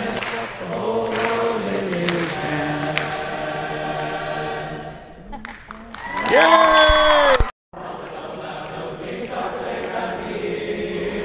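A large choir of young voices sings in a big echoing hall.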